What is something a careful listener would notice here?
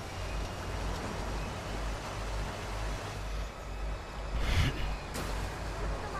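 A car crashes into the side of a truck with a loud bang.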